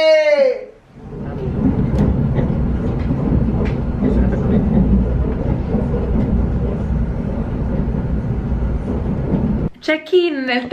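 A train rumbles steadily along.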